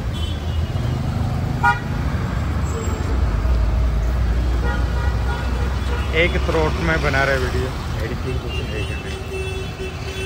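A motor scooter drives past close by.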